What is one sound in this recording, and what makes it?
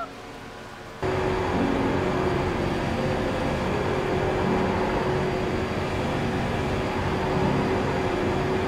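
A stock car V8 engine drones at steady high speed, heard from inside the cockpit.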